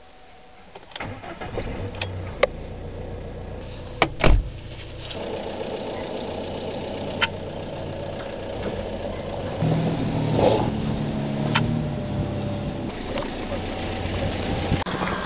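A car engine idles steadily nearby.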